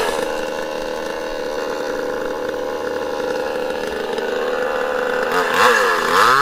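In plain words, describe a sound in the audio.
A two-stroke chainsaw idles.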